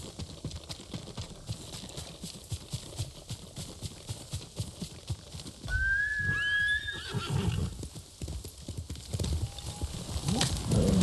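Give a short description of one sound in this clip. Footsteps rustle quickly through tall grass.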